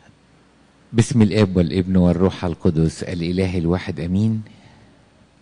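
An elderly man speaks loudly into a microphone, heard through a loudspeaker in an echoing hall.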